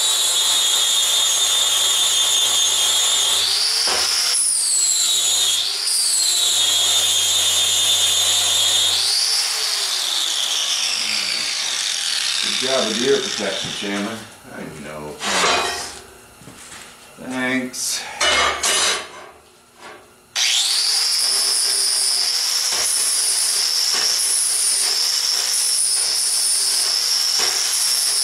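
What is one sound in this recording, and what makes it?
An angle grinder whines loudly as it grinds metal.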